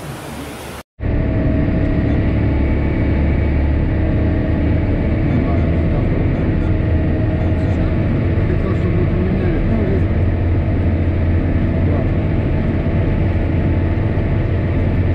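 A tractor engine rumbles steadily from inside a closed cab.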